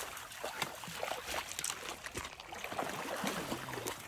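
A dog splashes through water.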